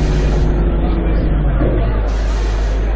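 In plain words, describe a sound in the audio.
A bus engine slows and winds down as the bus brakes.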